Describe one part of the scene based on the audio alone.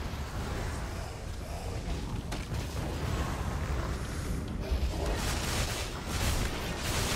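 Weapons clash and strike in combat.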